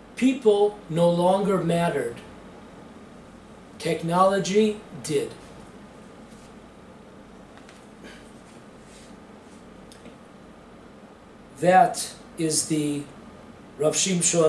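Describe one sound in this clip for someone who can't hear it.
An elderly man speaks calmly close to a microphone, in short phrases with long pauses.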